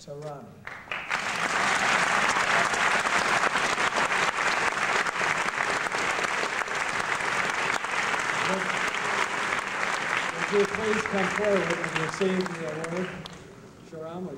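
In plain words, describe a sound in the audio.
An audience claps and applauds loudly.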